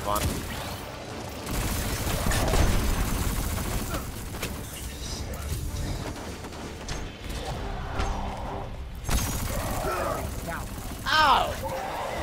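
Electric zaps and crackles from a game weapon sizzle.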